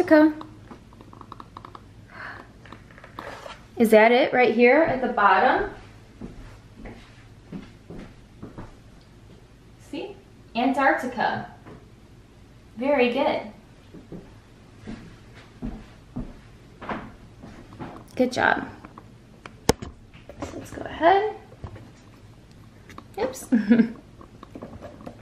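A woman speaks close by, lively and in short bursts.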